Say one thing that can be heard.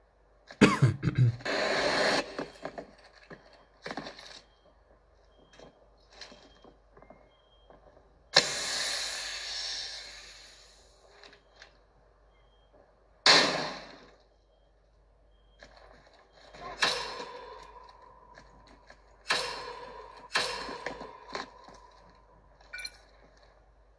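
Gunshots from a game crack in bursts through a small phone speaker.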